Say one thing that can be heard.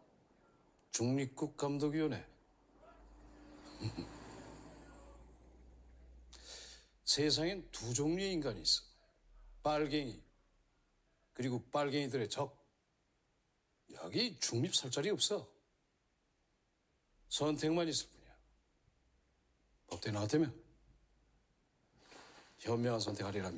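A middle-aged man speaks calmly and firmly, close by.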